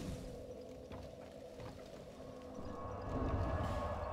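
A small fire crackles steadily.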